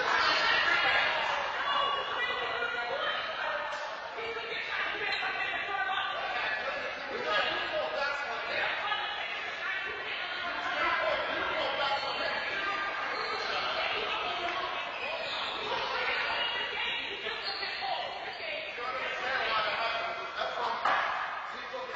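A man talks loudly in an echoing hall.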